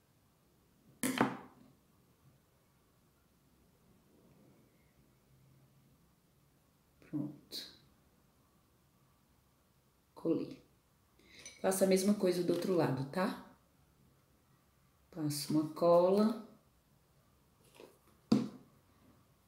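A plastic tool taps down on a hard table.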